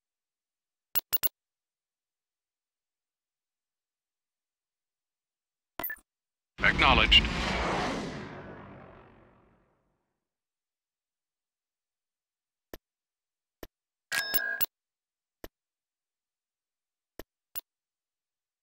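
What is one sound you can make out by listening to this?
Short electronic interface clicks sound now and then.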